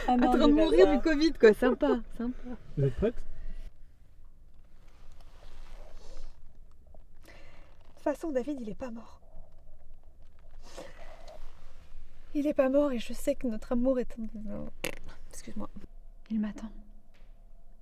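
A young woman speaks softly and with emotion, close by.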